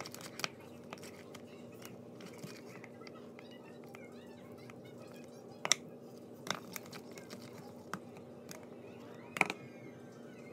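A spoon clicks against a plastic cup.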